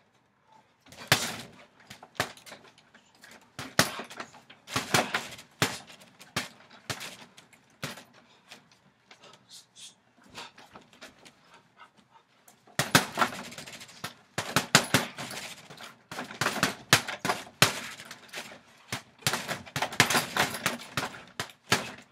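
Gloved punches thud against a heavy punching bag.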